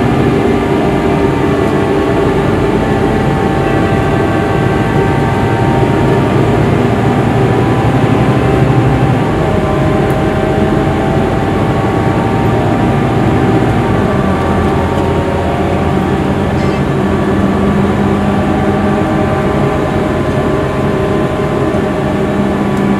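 A bus engine hums and drones steadily from inside the moving bus.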